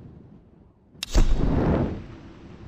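A short click and whoosh sound as a game menu changes.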